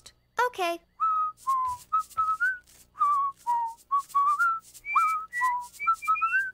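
A man whistles a bright, bouncy tune.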